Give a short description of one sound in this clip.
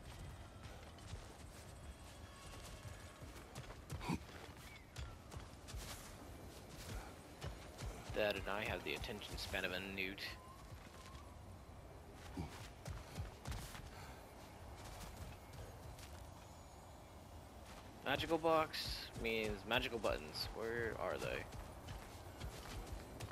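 Heavy footsteps crunch on grass and rocky ground.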